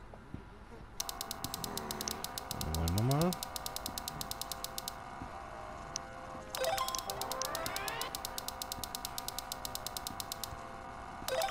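A keypad ticks rapidly as its digits roll.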